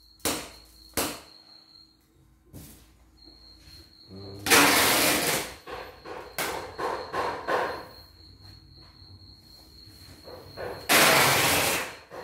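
Plastic parts click and knock as an embroidery hoop is fitted.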